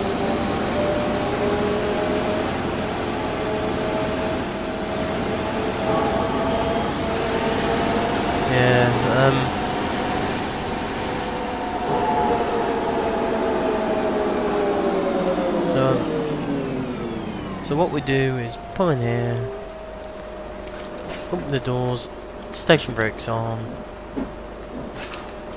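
A bus engine hums steadily, then winds down as the bus slows to a stop.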